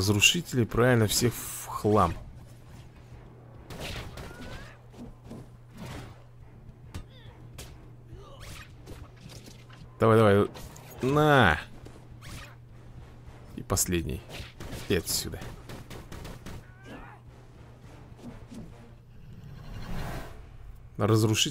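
Punches and energy blasts crack and thud in a fast fight.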